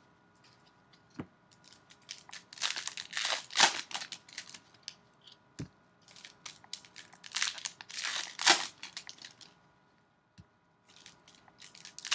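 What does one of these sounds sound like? Trading cards rattle and tap as they are set down.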